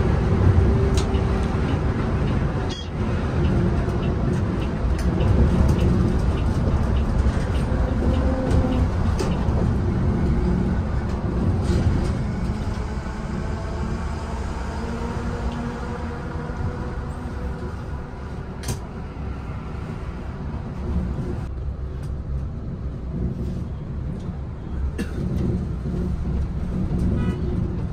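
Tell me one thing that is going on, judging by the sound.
A car engine hums steadily from inside while driving on a road.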